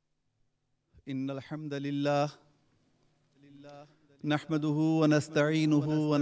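A man speaks into a microphone in a melodic, chanting voice.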